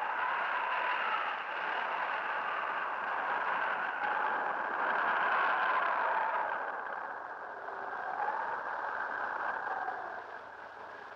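Propeller plane engines drone loudly overhead, rising and falling in pitch.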